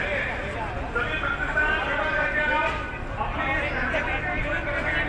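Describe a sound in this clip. Motorbike engines rumble on a street.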